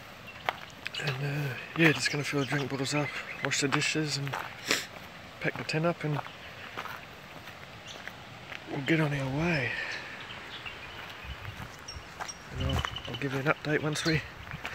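A young man talks calmly, close up.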